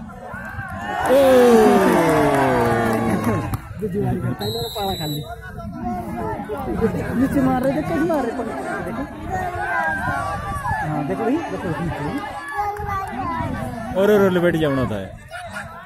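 A large outdoor crowd shouts and cheers.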